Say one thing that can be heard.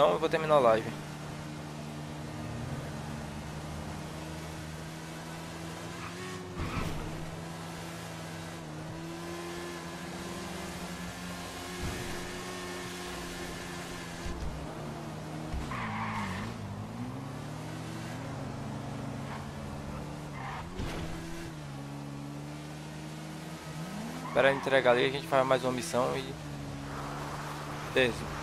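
A motorbike engine hums steadily and shifts in pitch as the rider speeds up and slows down.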